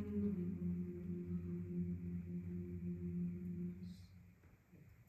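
A choir holds a soft sustained chord that ends.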